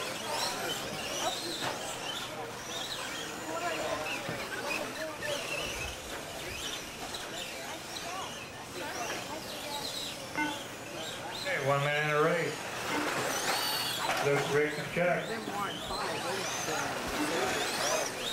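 Small electric model cars whine and buzz as they speed around a dirt track.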